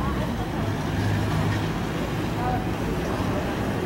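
Skateboard wheels roll and rumble on a ramp.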